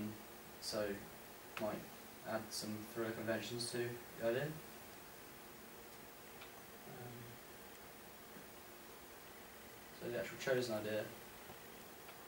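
A young man speaks calmly, presenting to a room.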